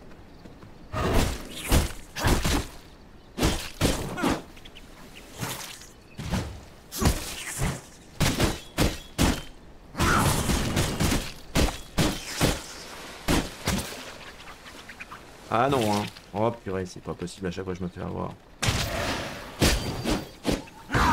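Swords swish and clash in quick, sharp hits.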